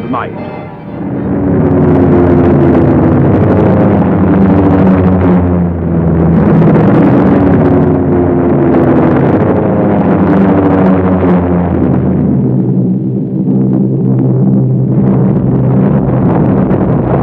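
Heavy propeller engines roar loudly and steadily.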